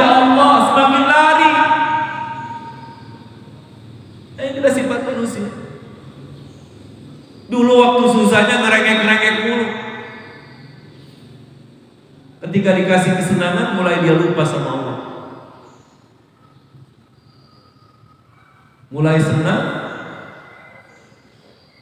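A man preaches with feeling through a microphone, his voice echoing in a large hall.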